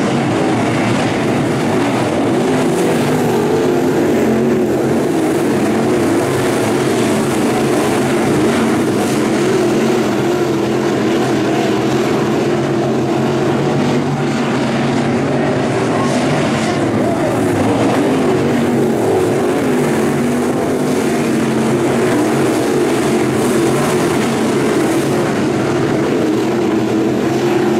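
Engines rise and fall in pitch as cars speed past and slow for the turns.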